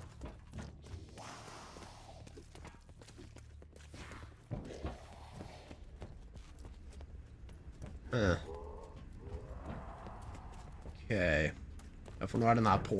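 Footsteps thud on a hard floor as a person walks.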